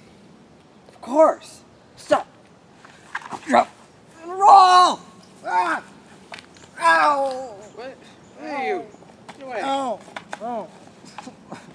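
A young man speaks and cries out with animation, close by.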